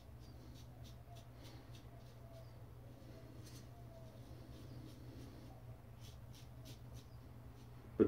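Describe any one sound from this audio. A safety razor scrapes through stubble on a face.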